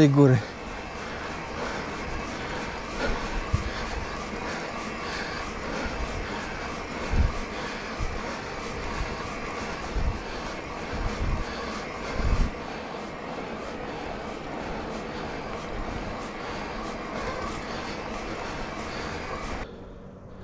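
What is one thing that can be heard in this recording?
Bicycle tyres hum steadily over a smooth paved path.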